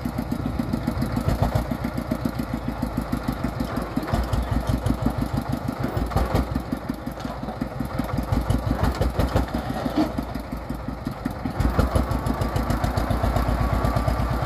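A small diesel engine chugs steadily close by.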